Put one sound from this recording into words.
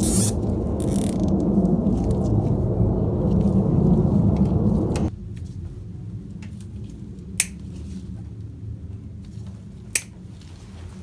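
Metal tools click and tap against engine parts.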